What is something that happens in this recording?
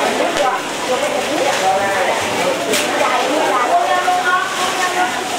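Plastic bags rustle as goods are handled.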